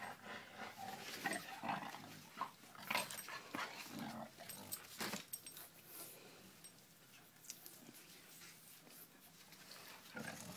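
Two dogs scuffle and thump on a carpeted floor.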